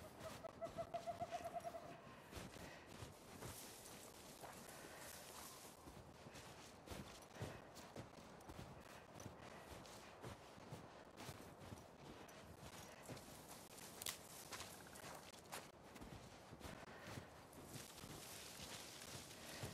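Wind blows softly outdoors.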